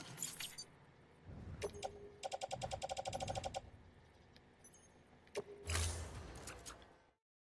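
Short electronic blips and clicks sound from a menu.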